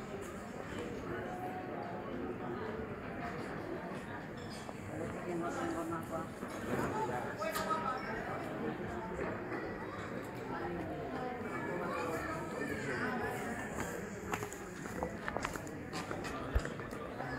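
Several adults talk casually nearby outdoors.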